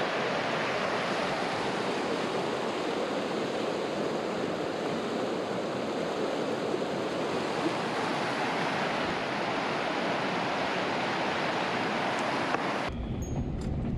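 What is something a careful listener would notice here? River rapids rush and splash over rocks.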